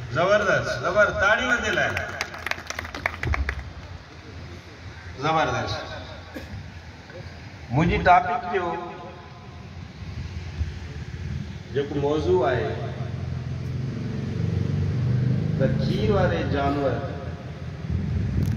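A man speaks through a microphone and loudspeakers, addressing a gathering.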